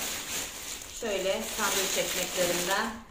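A woman speaks calmly and close to the microphone.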